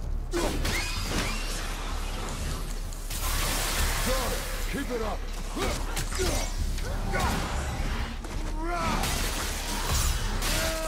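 Weapons clash and whoosh in a fierce fight.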